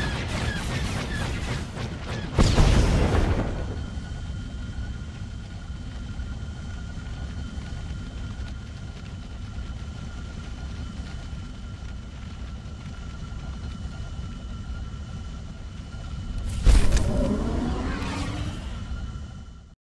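A spaceship engine hums and roars steadily.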